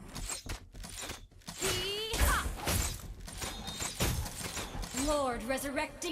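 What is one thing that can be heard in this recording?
Magic spells whoosh and crackle in quick bursts.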